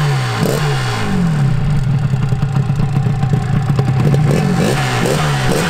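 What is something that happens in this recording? A two-stroke motorcycle engine idles with a rattling burble.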